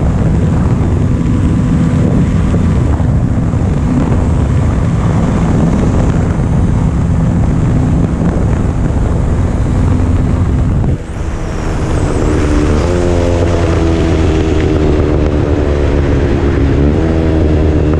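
Wind rushes loudly.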